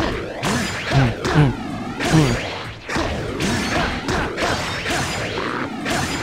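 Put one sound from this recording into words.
Blades clash and blows land in a fast fight.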